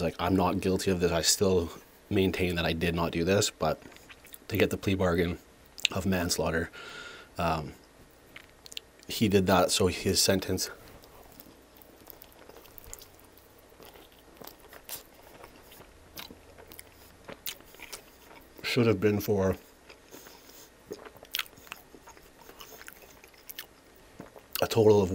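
A man speaks softly and closely into a microphone.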